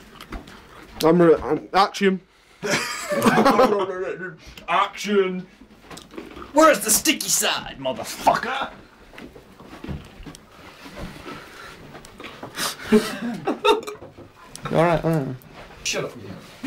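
A young man laughs and talks loudly close by.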